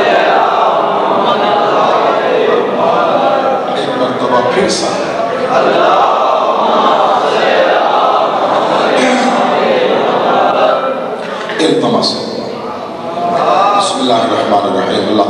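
A man speaks with feeling into a microphone, heard through a loudspeaker in an echoing room.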